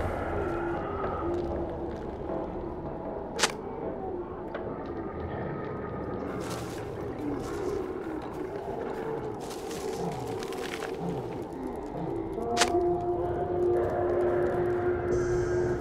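Footsteps run across stone.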